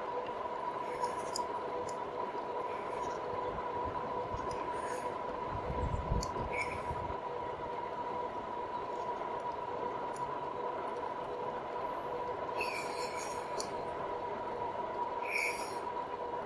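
Wind rushes steadily past a moving bicycle outdoors.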